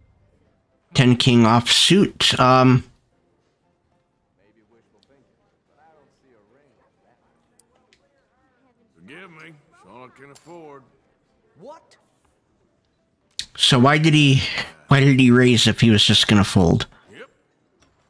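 A middle-aged man talks loudly and animatedly into a close microphone.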